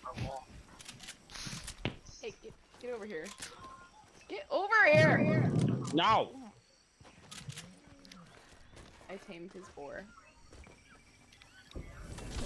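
Quick footsteps patter across grass.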